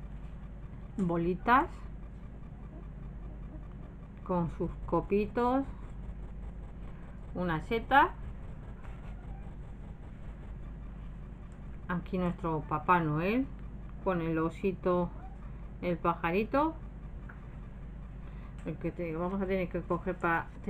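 A woman talks calmly close by, in short phrases.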